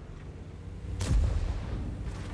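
A shell explodes with a sharp boom.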